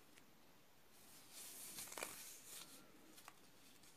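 A soft tape measure rustles against woven cord.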